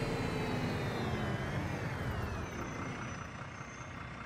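A diesel city bus engine winds down as the bus slows to a stop.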